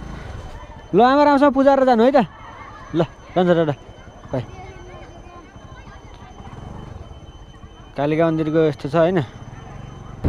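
A young boy talks loudly close by.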